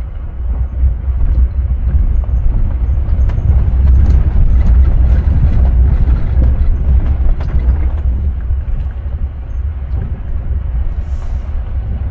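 Tyres crunch and rattle over a rough dirt track.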